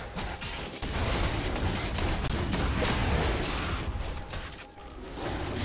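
Weapons clash and spells whoosh in a fast fight.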